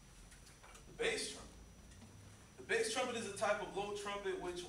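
A young man speaks calmly to an audience in an echoing room.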